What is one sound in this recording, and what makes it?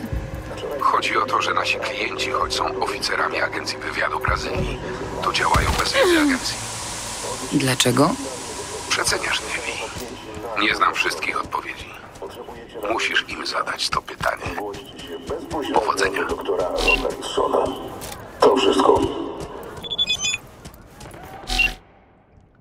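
A middle-aged man speaks calmly over a call.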